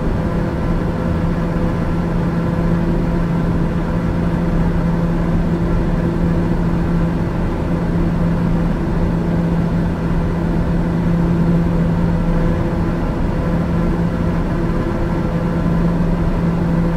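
Jet engines hum steadily with a constant low drone.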